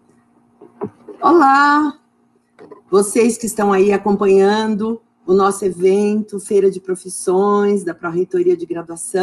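A middle-aged woman speaks with animation through an online call.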